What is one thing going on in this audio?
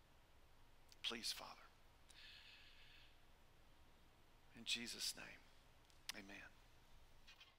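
An older man speaks calmly through a microphone in short phrases.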